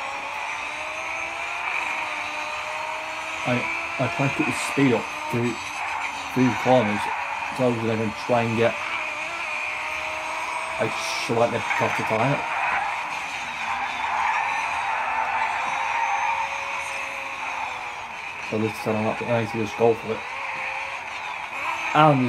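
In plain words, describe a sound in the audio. A racing car engine roars at high revs, rising and dropping in pitch as it shifts gears.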